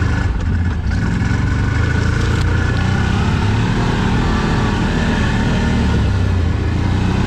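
An all-terrain vehicle engine rumbles steadily up close.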